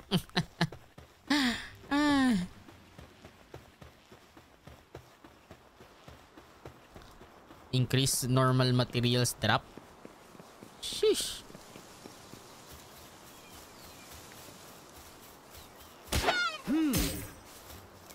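Footsteps run quickly over sand and grass.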